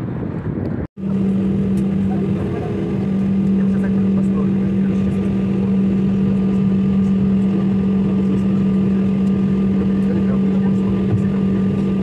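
Jet engines hum steadily from inside an airliner's cabin as it taxis.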